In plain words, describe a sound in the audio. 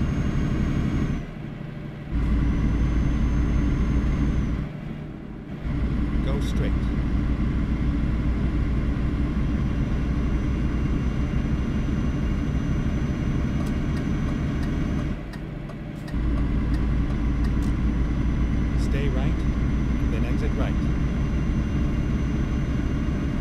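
A truck engine rumbles steadily, dipping briefly at gear changes.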